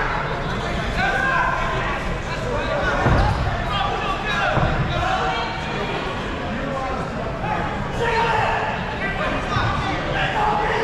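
Men in the crowd shout and cheer.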